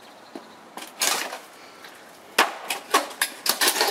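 A pickaxe strikes metal with sharp clanging blows.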